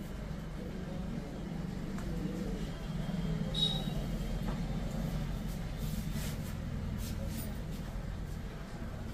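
Fingers rub and crackle close against an ear.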